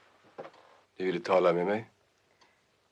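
A middle-aged man asks a short question calmly.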